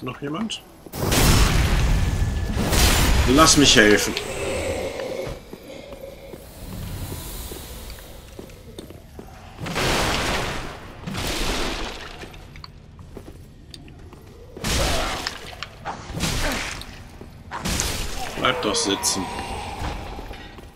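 Loud crashing blows and whooshing rush out in bursts.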